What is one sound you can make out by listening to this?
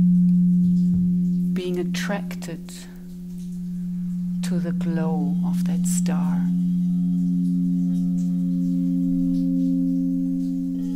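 Crystal singing bowls ring with a steady, humming drone.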